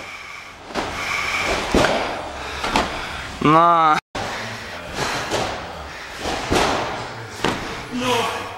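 A trampoline bed thumps with each bounce.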